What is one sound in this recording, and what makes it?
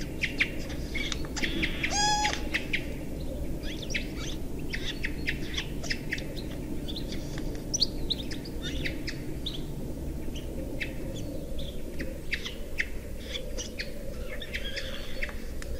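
A bird calls with short, sharp chirps over and over.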